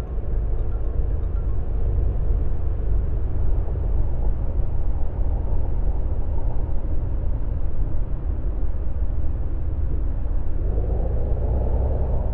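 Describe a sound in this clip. A bus engine drones steadily at cruising speed.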